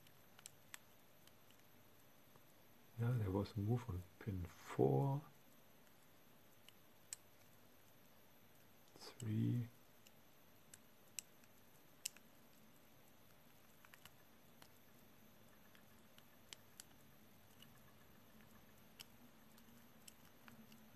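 A small blade scrapes and clicks softly against a piece being carved.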